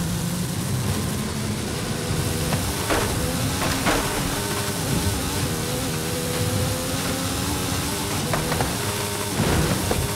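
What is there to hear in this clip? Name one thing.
Tyres rumble and skid over rough dirt and grass.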